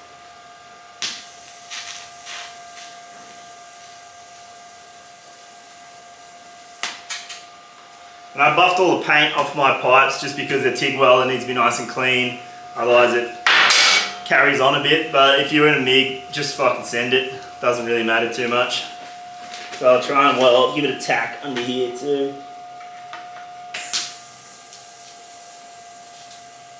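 A welding arc hisses and crackles steadily.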